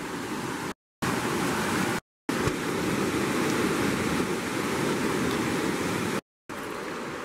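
A river rushes loudly over rocks.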